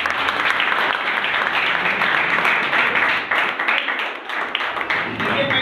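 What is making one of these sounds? A crowd claps steadily.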